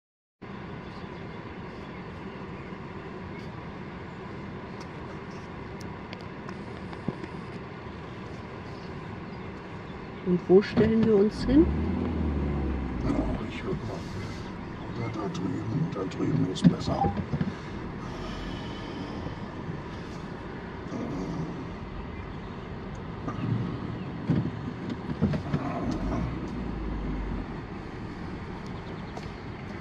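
A car drives slowly, its engine humming from inside the cabin.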